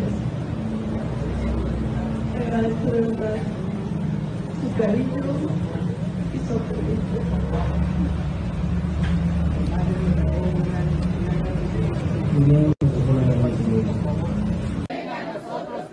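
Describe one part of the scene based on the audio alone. A young woman speaks calmly through a microphone over loudspeakers outdoors.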